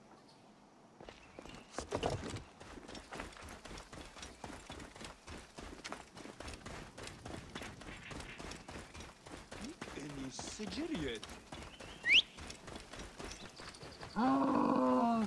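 Quick footsteps run over sand and dirt.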